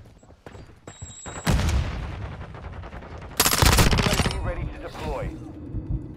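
Boots run over hard ground.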